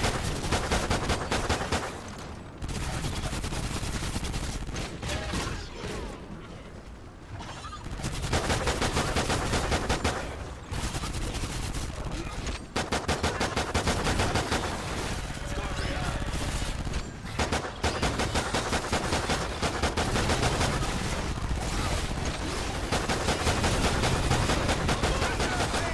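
Pistol shots crack in rapid bursts.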